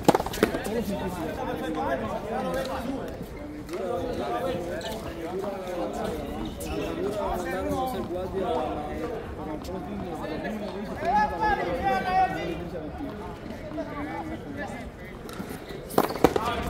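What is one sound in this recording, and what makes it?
Young men talk and call out to each other in a large echoing court.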